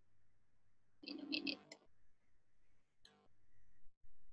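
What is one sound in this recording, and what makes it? A young woman speaks briefly and quietly, close to a microphone.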